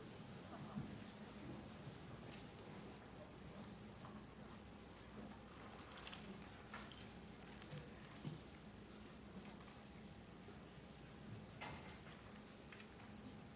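Chairs and feet knock and clatter as people move about a large room.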